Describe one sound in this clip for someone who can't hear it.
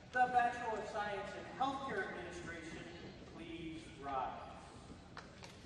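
A man speaks into a microphone through loudspeakers in a large echoing hall.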